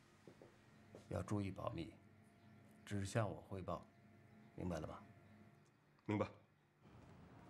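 A middle-aged man speaks calmly and firmly.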